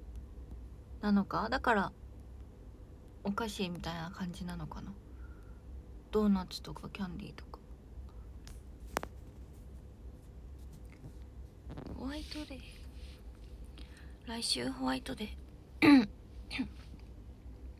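A young woman speaks softly and close up, in short bursts.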